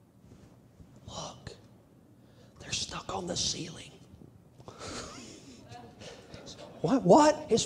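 A middle-aged man preaches with animation through a microphone in an echoing hall.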